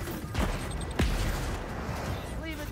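An explosion booms with a deep blast.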